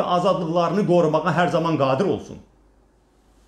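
A middle-aged man speaks firmly and clearly, close to a microphone.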